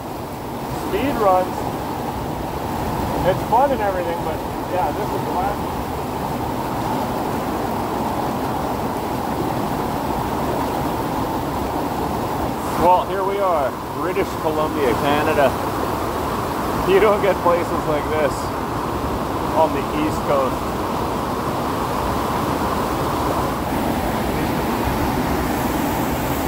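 A waterfall and a rushing creek roar steadily nearby.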